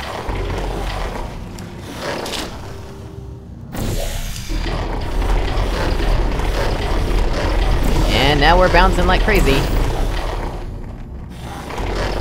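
A futuristic gun fires with an electric zap.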